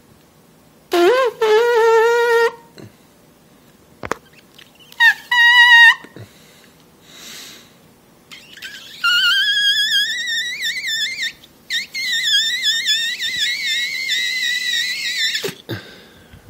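A man whistles a warbling tune close to the microphone.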